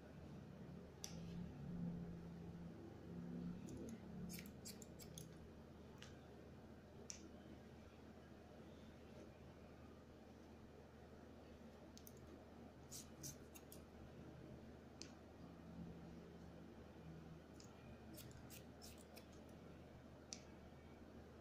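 Scissors snip through hair in short, crisp bursts, close by.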